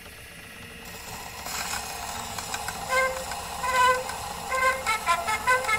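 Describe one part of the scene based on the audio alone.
A gramophone record plays music with surface crackle.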